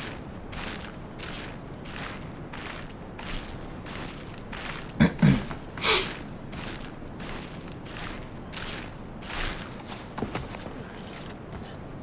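Hands scrape and grip rock in steady, rhythmic climbing.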